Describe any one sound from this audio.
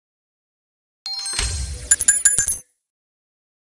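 A bright game chime sounds as a reward box opens.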